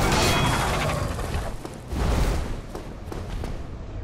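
A monster lands with a deep thud.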